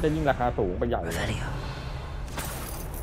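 A magic spell crackles and whooshes with a sparkling burst.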